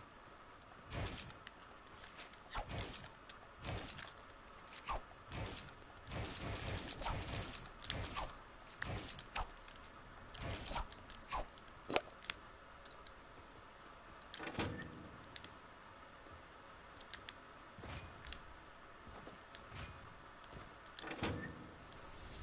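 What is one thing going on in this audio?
Footsteps tap across a hard floor.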